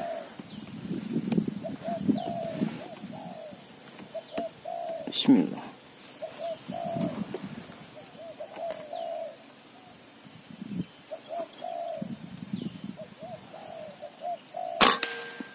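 A dove coos softly and repeatedly nearby.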